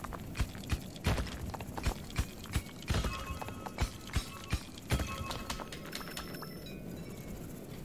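Short digging clicks and thuds tap out again and again.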